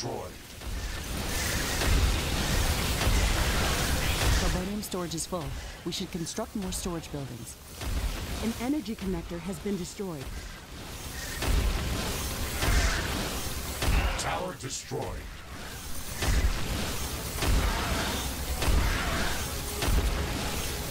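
Explosions and laser blasts boom and crackle steadily.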